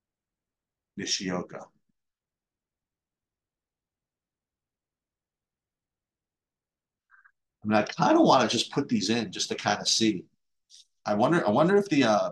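A man speaks calmly, close to a microphone, in bursts with pauses.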